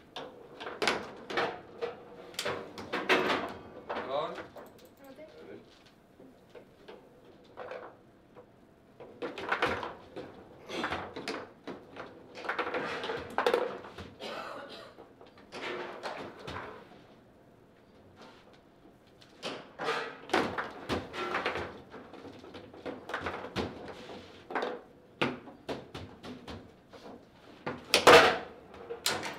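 A foosball ball knocks sharply against plastic players and the table walls.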